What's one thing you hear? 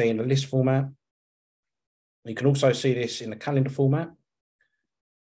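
A man speaks calmly and close into a microphone, in short bursts.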